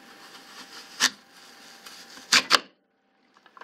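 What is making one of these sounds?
An apple slicer crunches down through an apple.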